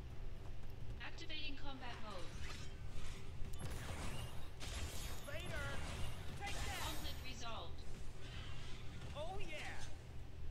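Swords clash and swish in a fast fight.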